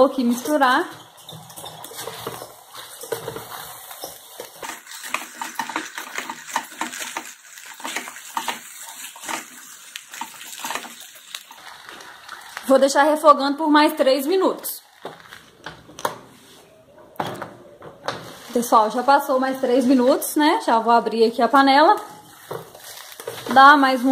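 A plastic paddle scrapes and stirs rice in a metal pot.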